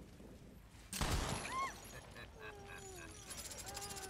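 A gun fires with sharp cracks.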